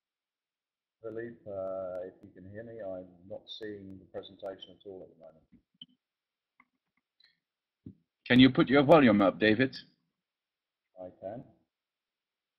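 A middle-aged man talks calmly through an online call.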